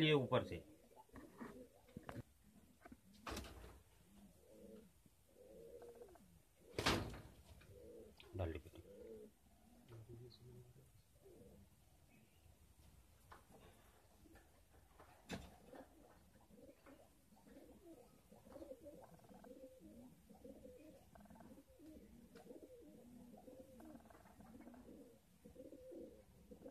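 Pigeons coo with low, bubbling calls.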